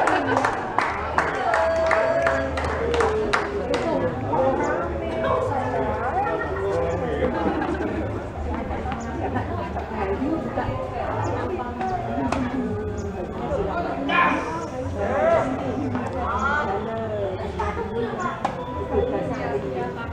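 Women and men chatter and call out nearby outdoors.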